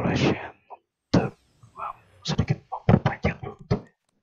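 A game plays a whooshing effect as a card flips and flies away.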